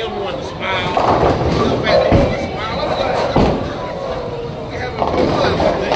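A bowling ball rolls down a lane.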